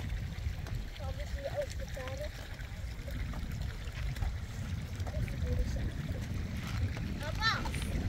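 A young child babbles and squeals nearby.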